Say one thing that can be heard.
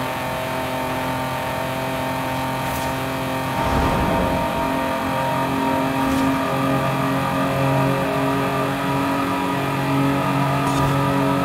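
A car engine roars steadily at high speed, growing louder and echoing as it enters a tunnel.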